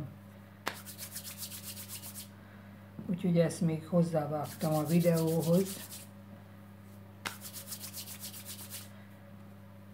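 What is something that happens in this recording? Fingers roll small pieces of dough across a floured wooden board with a quick, soft, rhythmic scraping.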